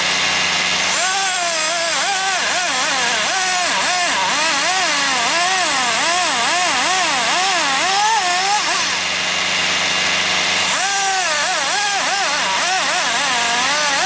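A hydraulic crane whines, rising and falling in pitch.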